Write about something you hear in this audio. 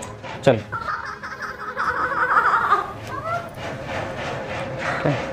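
A young woman laughs and shrieks playfully close by.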